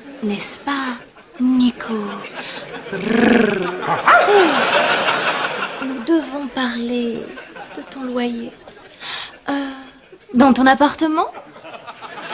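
A woman speaks playfully close by.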